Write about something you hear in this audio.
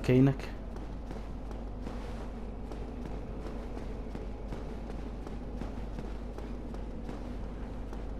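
Footsteps thud steadily on a stone floor.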